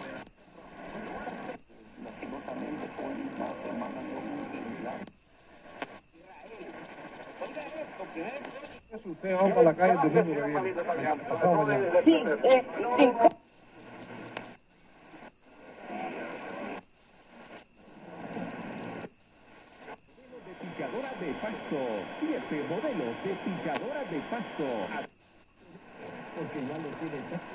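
A radio's loudspeaker plays crackly broadcasts that switch every few seconds as the radio tunes from station to station.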